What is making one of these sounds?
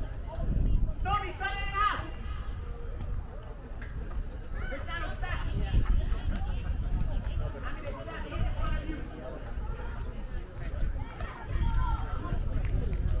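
Young players shout to each other in the distance across an open field.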